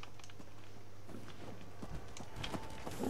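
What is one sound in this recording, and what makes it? Heavy armored footsteps thud and clank on hard ground.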